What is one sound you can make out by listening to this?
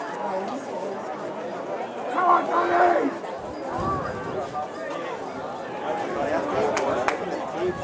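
Players shout across an open field.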